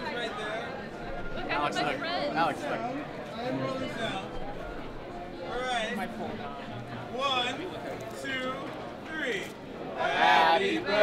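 A crowd murmurs and chatters in a large busy hall.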